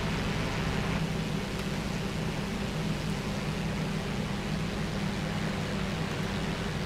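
A propeller plane's engine idles with a steady low drone.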